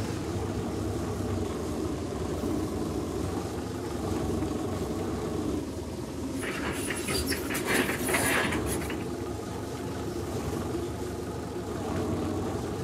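A small loader's engine rumbles steadily.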